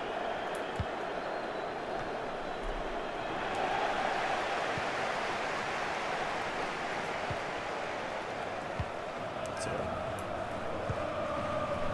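A football is kicked with dull thumps.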